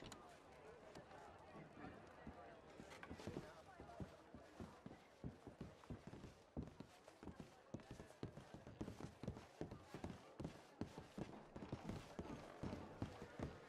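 Footsteps thud on a wooden floor and stairs.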